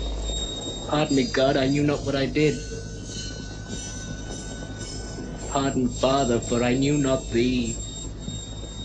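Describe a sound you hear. A man sings in a low, strained voice, close by.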